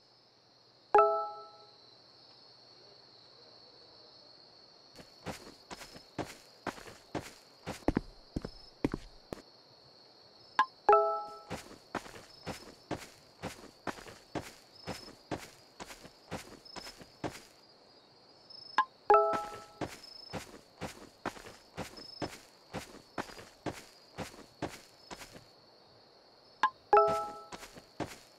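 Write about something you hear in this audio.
A short bright chime rings now and then.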